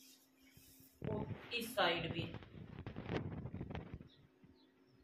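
Cloth rustles softly.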